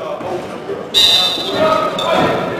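A referee's whistle blows sharply in a large echoing gym.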